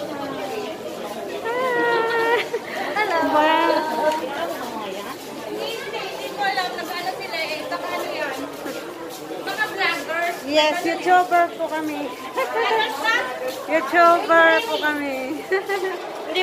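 Young women talk and call out cheerfully nearby.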